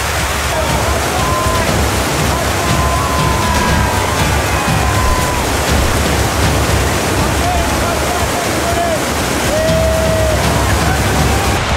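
A group of young men and women cheer and shout over the rushing water.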